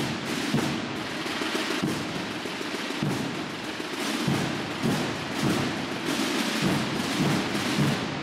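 Many people walk slowly across a hard floor in a large echoing hall.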